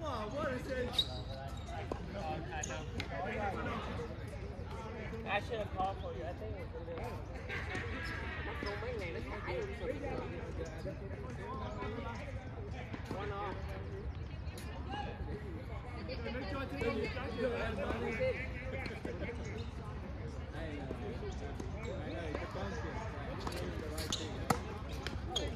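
Paddles pop sharply against a ball now and then.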